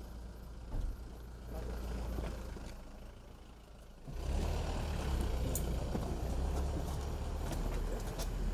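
Footsteps shuffle on pavement outdoors.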